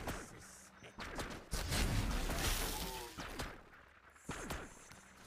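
Laser weapons zap and fire in quick bursts.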